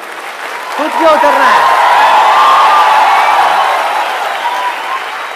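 A large audience laughs and cheers.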